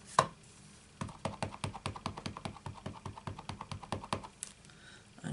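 A stamp pad taps quickly and lightly many times against a stamp.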